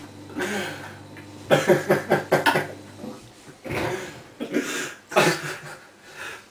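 Young men laugh together close by.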